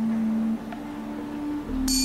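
A tuning fork hums steadily close by.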